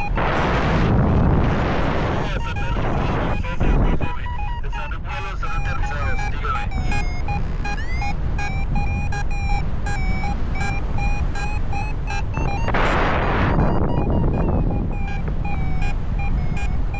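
Wind rushes and buffets loudly past, high up in the open air.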